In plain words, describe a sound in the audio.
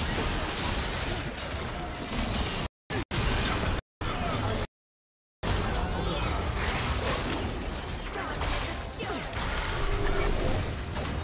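Magic blasts whoosh and crackle in a video game battle.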